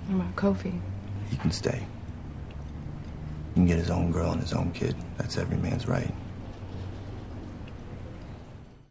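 A man speaks quietly and intently, close by.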